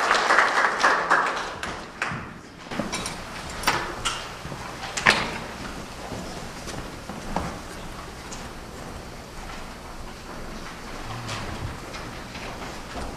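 An elderly woman speaks to the room.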